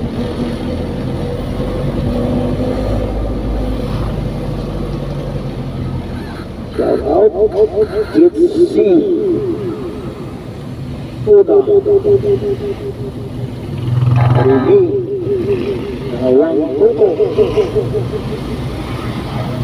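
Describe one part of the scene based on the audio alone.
A car drives along an asphalt road, heard from inside, with a low road rumble.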